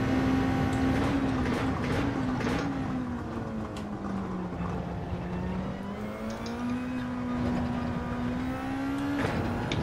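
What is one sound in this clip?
A racing car engine drops in pitch as the car brakes and downshifts, then picks up again.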